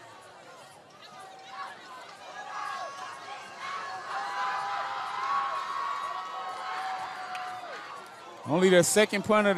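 A crowd cheers in the stands outdoors.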